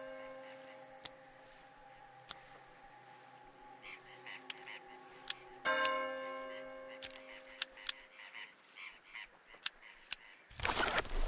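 Metal weapon parts click and clack into place.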